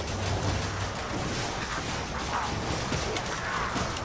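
Weapons swing and thud in a close fight.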